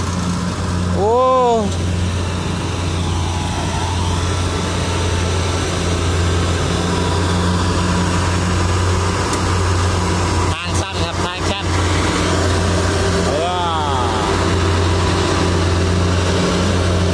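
A combine harvester engine drones steadily close by.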